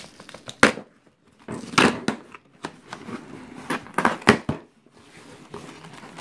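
Cardboard flaps rustle and crackle as a box is opened.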